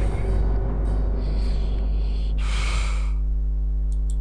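A young man talks quietly through a microphone.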